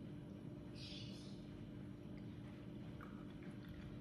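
Liquid pours into a cup.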